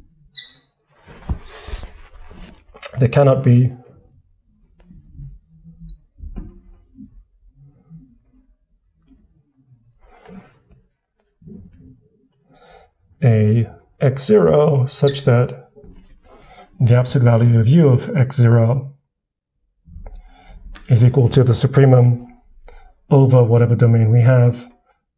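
A man speaks calmly into a close microphone, explaining in short bursts.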